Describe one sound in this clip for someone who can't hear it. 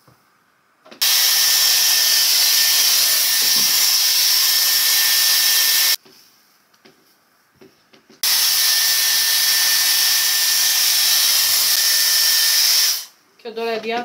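A hair dryer blows with a loud, steady roar, stopping and starting again.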